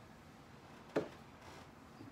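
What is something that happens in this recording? A book knocks against a shelf.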